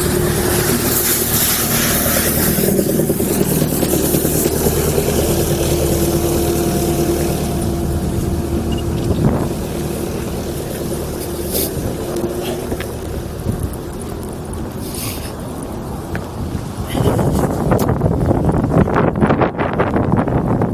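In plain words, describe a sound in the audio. Wind buffets loudly throughout, as if outdoors while moving.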